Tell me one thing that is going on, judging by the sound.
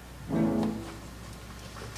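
A woman sings a short high note.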